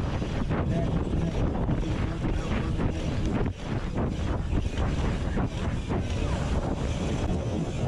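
Wind buffets a microphone on a moving bike.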